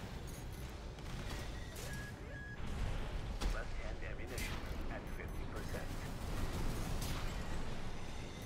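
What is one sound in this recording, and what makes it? Heavy mechanical thuds and explosions boom.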